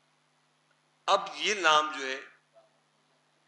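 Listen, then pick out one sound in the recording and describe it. An elderly man speaks briefly and calmly nearby.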